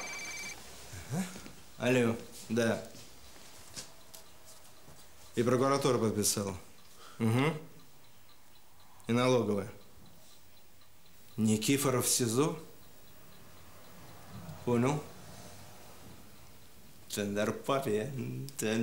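A middle-aged man talks on a phone in a calm, steady voice.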